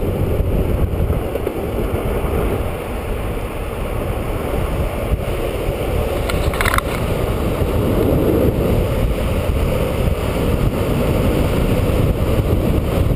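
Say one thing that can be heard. Skateboard wheels roll and rumble steadily on asphalt.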